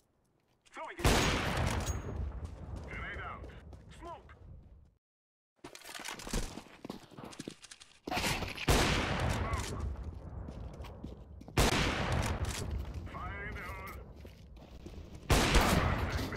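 A rifle fires loud single shots that echo away.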